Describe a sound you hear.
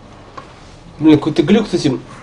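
A young man speaks up close into a microphone.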